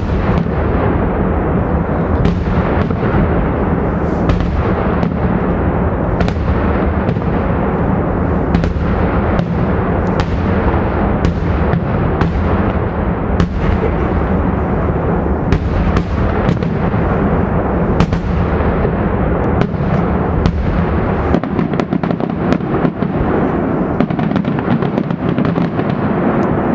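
Fireworks bang and crackle in rapid bursts outdoors, echoing off the hills.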